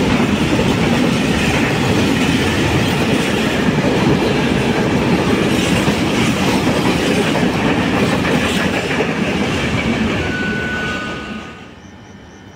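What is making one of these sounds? A freight train rumbles past close by with a loud roar of wheels on the rails, then fades away.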